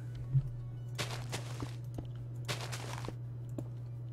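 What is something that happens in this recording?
Dirt crunches in short bursts as blocks are dug out.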